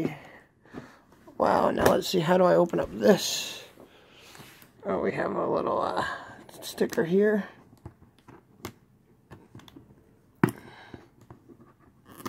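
A cardboard box rustles and knocks as hands handle it.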